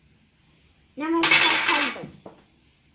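A young girl cries out loudly.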